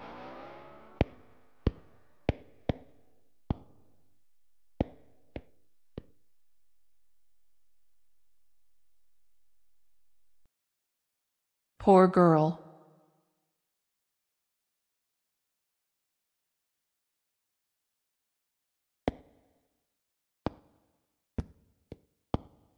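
Footsteps click on a hard tiled floor.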